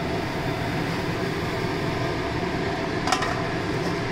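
A thick stew bubbles and simmers in a pan.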